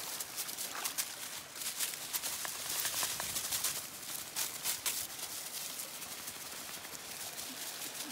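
Dry leaves rustle and crunch under dogs' running paws.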